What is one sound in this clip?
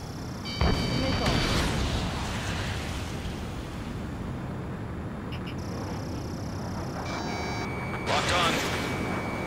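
Missiles launch with a sharp whoosh.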